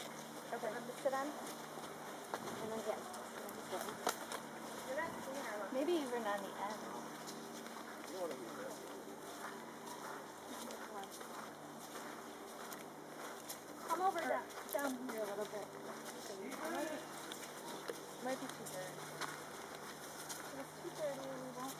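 Women talk nearby outdoors.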